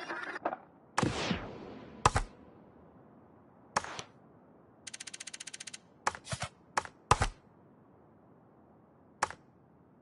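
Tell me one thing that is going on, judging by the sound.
Short menu clicks and blips sound now and then.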